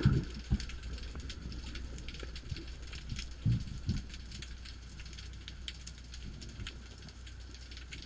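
Muffled underwater sound rumbles low and crackles steadily.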